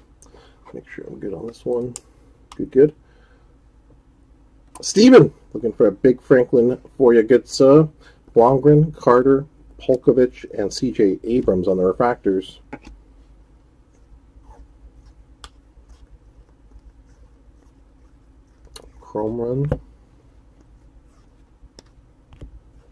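Trading cards slide and flick against one another as they are shuffled by hand.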